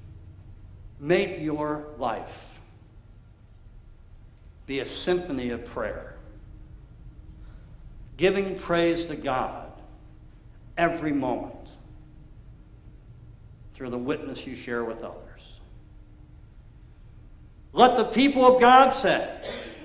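A middle-aged man speaks calmly into a microphone in a large echoing room, pausing between phrases.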